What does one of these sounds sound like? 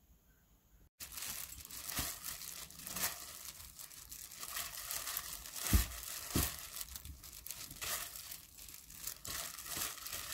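Plastic gloves rustle and crinkle as hands toss leafy greens in a bowl.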